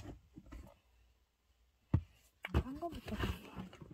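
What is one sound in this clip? Fingers rub and rustle against cloth close by.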